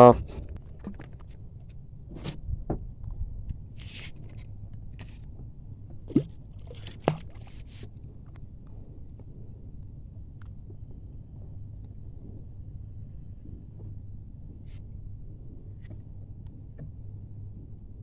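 Small waves lap gently against a boat's hull.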